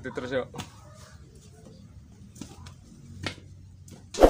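Boots crunch on loose soil.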